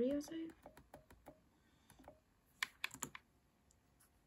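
Laptop keys click as a finger taps them.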